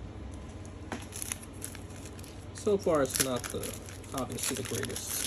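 A foil wrapper crinkles and tears open.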